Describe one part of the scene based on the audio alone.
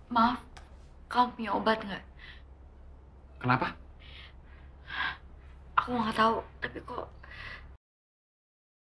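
A woman speaks in a distressed, tearful voice close by.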